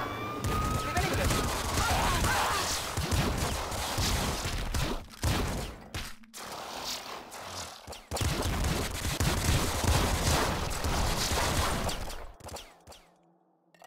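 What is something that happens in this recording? Game guns fire rapidly.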